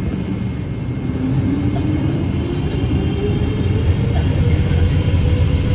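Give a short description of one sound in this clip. A jet engine's roar swells and rises in pitch as the aircraft speeds up.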